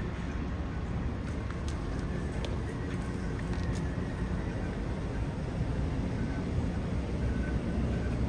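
Footsteps of people walking pass close by on pavement.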